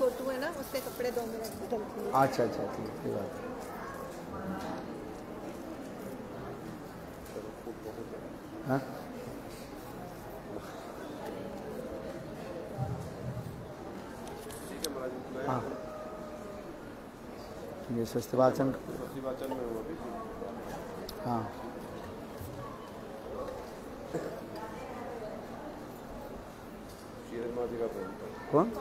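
An elderly man speaks calmly into a microphone, heard through a loudspeaker in an echoing hall.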